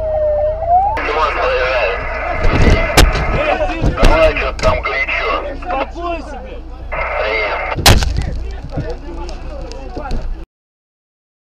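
Men shout and argue loudly nearby.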